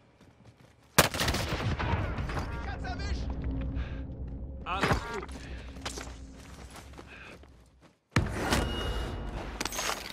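Gunshots ring out sharply.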